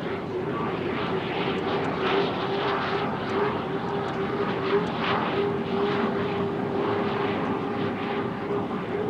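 Water hisses and sprays behind a speeding boat.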